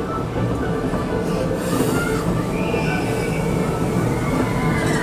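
A ride car rumbles and rattles steadily along its track.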